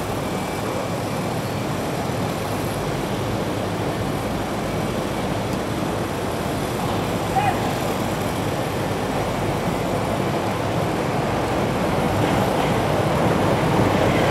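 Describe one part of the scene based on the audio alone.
An electric passenger train approaches on rails, its rumble growing louder.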